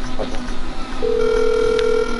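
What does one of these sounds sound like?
A phone rings with a steady electronic tone.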